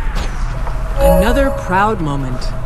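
A magic attack strikes with a bright ringing burst.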